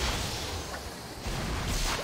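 A fire bursts up with a roaring whoosh.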